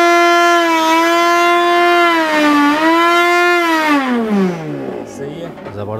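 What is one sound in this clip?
A blender motor whines loudly at a steady high pitch, then winds down as it is switched off.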